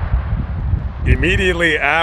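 A man speaks with animation close to the microphone, outdoors in wind.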